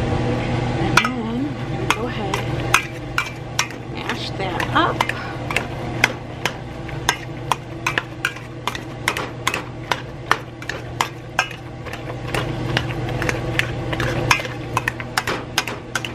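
A metal masher clanks against the side of a pot.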